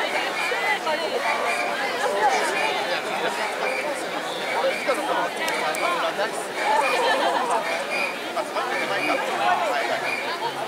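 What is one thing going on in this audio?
A large outdoor festival crowd of men and women chants and shouts.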